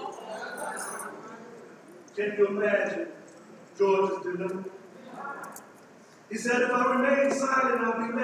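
A man preaches through a microphone in strong bursts with short pauses.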